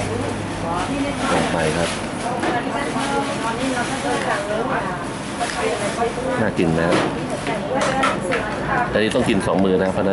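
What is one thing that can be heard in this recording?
A metal spoon scrapes and clinks against a plate.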